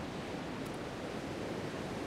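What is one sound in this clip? Wind rushes steadily.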